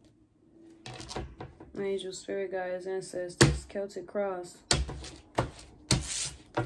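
Cards tap and slide on a wooden table.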